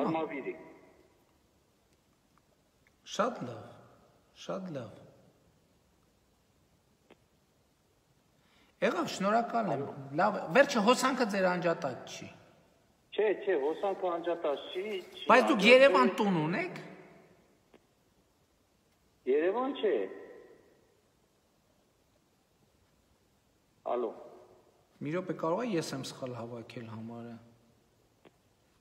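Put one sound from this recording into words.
A middle-aged man speaks calmly in short bursts, close by, with pauses in between.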